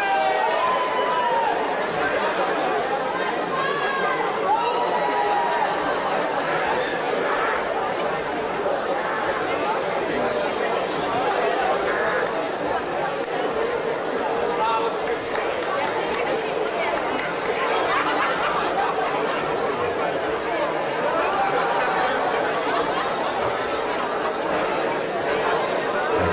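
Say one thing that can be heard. A large brass and wind band plays lively music outdoors.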